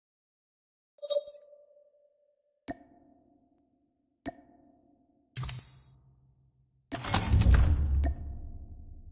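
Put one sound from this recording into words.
Short game menu clicks and chimes sound one after another.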